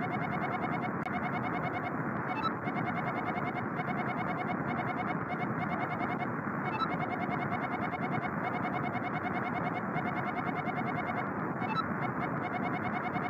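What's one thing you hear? Rapid soft electronic blips tick steadily as text types out.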